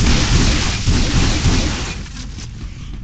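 A heavy gun fires rapid rumbling bursts.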